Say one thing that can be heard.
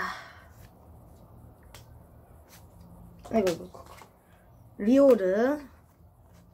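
Trading cards rustle and flick in hands.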